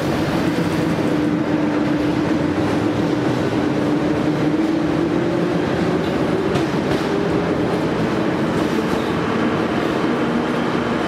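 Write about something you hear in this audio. A train's motor whines, rising as the train pulls away.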